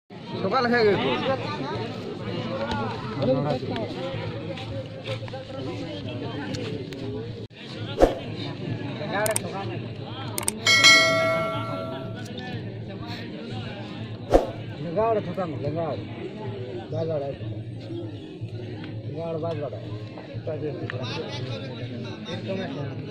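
A crowd of men and boys chatters and calls out outdoors.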